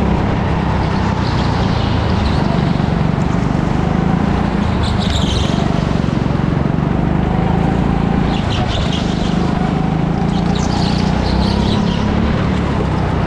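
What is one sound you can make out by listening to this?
Go-kart tyres squeal on the smooth floor in short bursts through the bends.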